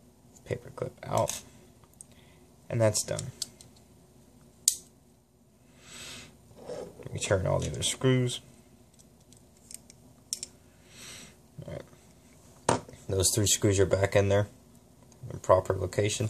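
Small plastic and metal parts click and rattle as they are handled.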